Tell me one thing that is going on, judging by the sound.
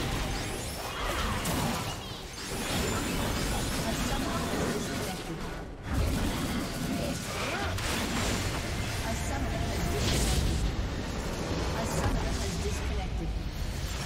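Game spell effects whoosh and crackle as characters fight.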